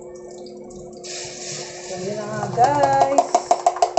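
Batter pours into a pan.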